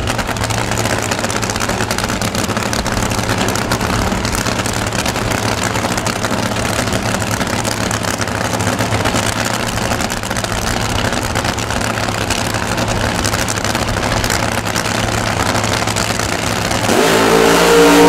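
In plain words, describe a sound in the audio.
A dragster engine idles with a loud, rough rumble.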